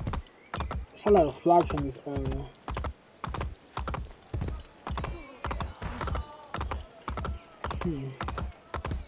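Horse hooves clop rapidly on stone paving.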